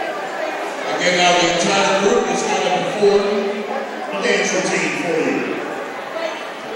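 A group of young girls shouts and cheers loudly together.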